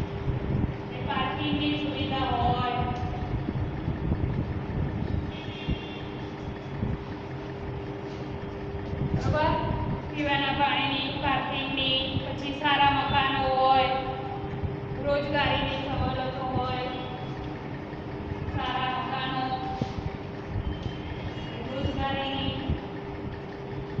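A young woman speaks nearby, clearly and in a measured teaching voice.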